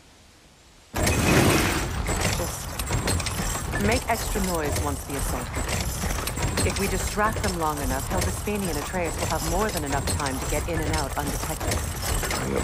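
A heavy stone door grinds and rumbles as it rolls open.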